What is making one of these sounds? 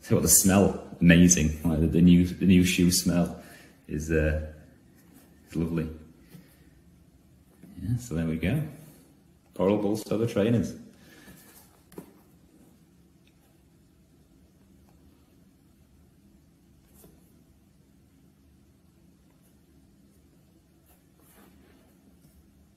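A leather shoe rustles and creaks softly as hands turn it over.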